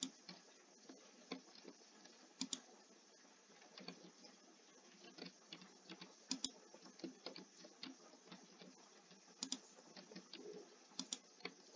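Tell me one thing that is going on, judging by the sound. Game blocks click and thud as they are placed, in quick irregular bursts.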